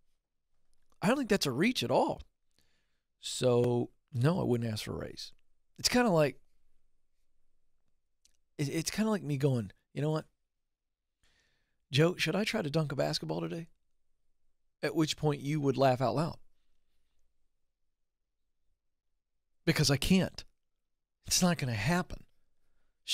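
A man speaks into a close microphone in short bursts, with pauses between them.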